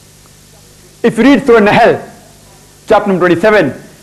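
A young man speaks calmly and close into a clip-on microphone.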